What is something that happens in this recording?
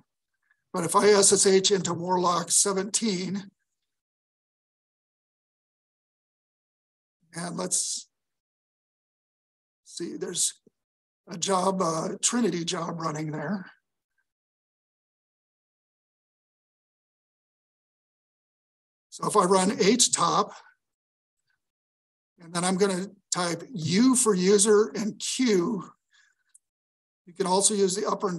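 A man speaks calmly through an online call, in short bursts with pauses.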